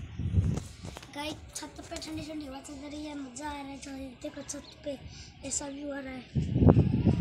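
A young boy talks nearby with animation.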